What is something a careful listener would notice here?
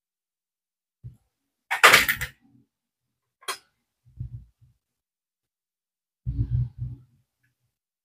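A circuit board knocks and rattles against a table.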